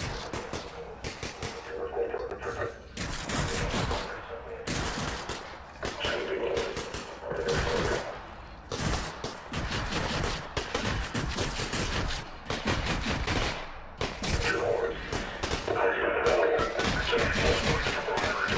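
Bullets ricochet off metal armour with sharp pings.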